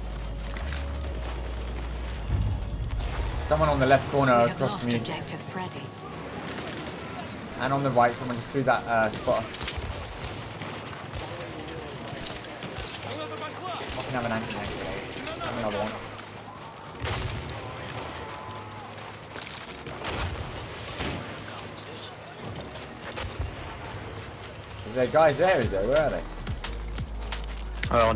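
Gunshots crack repeatedly.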